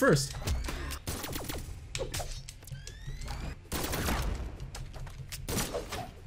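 Fighting video game sound effects of hits and whooshes clash in quick bursts.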